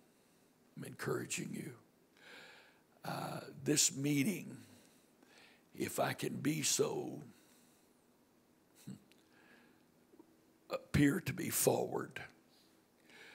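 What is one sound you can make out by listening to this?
An older man speaks through a microphone over loudspeakers in a hall, pausing between phrases.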